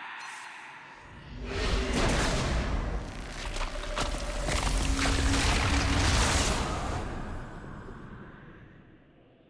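A magical blast roars and crackles loudly, then fades away.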